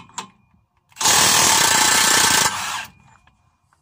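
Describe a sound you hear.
An impact wrench whirs loudly in a short burst.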